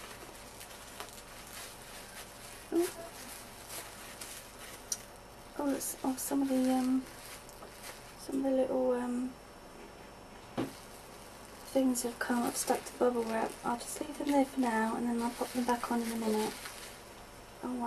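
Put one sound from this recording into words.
Plastic bubble wrap crinkles and rustles close by.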